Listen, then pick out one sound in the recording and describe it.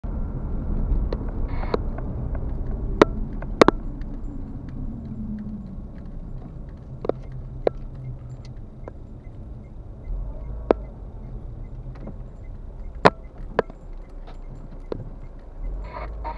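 A car engine hums steadily from inside the cabin as the car drives.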